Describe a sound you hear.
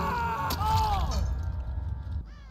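A woman screams in pain close by.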